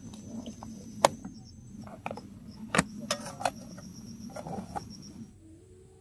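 A metal lid clatters onto a metal pot.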